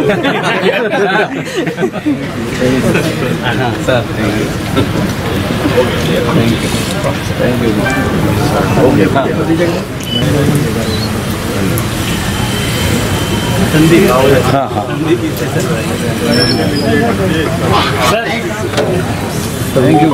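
A crowd of men chatter loudly all around, close by.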